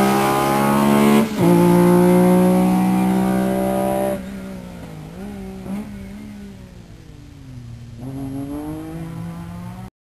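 A rally car engine roars loudly as the car accelerates away, its pitch dropping and rising with gear changes.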